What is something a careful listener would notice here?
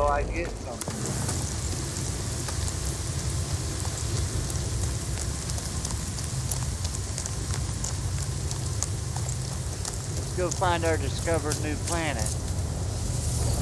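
Footsteps crunch quickly on the ground.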